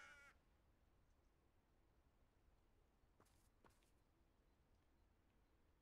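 Footsteps crunch softly on snow.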